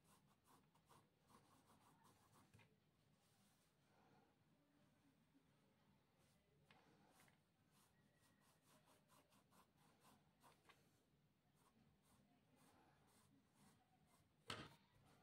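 A pencil scratches and scrapes on paper in short, quick strokes.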